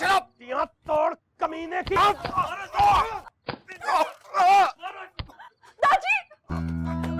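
An older man shouts angrily.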